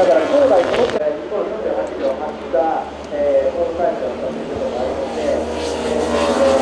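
A superbike engine revs high while accelerating out of a corner.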